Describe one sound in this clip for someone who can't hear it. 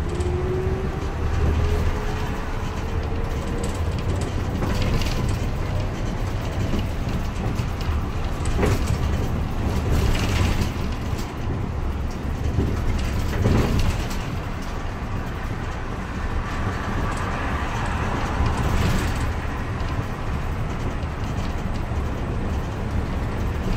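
A bus engine hums low and steady while driving.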